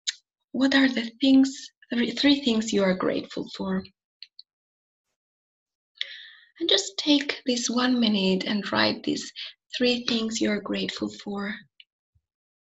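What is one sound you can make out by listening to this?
A young woman speaks calmly through a microphone on an online call.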